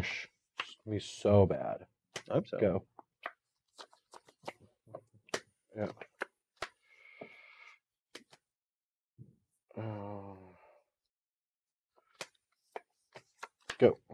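Playing cards tap and slide on a table.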